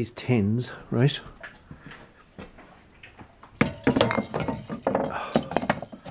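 A metal spray can clinks against other cans on a shelf.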